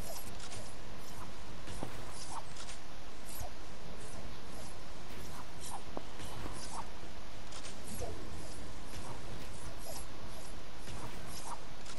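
Wooden building pieces snap into place with quick clacks.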